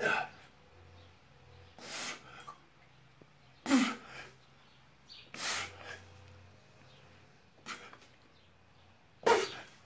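A man exhales sharply and loudly in forceful bursts.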